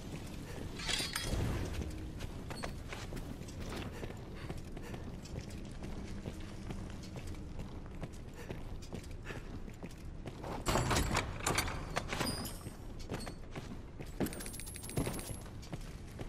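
A sword slashes and clangs in combat.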